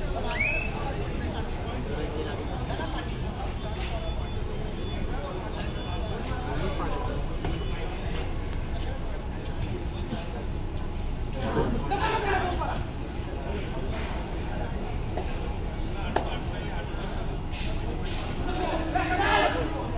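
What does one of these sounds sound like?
A crowd of spectators chatters and murmurs steadily in a large echoing hall.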